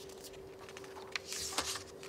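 Paper sheets rustle.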